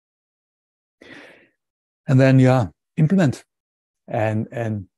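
A man speaks calmly through a microphone, as on an online call.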